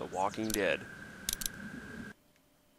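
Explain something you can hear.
A menu button clicks once.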